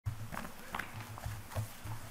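Book pages rustle as a man turns them.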